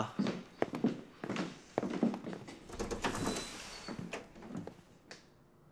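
Footsteps knock across a hard wooden floor.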